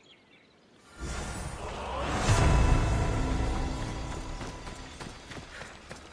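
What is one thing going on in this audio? A deep booming chime swells and slowly fades.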